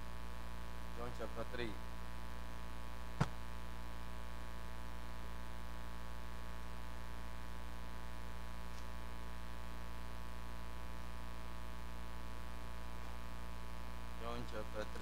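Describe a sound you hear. A man speaks briefly through a loudspeaker, far off.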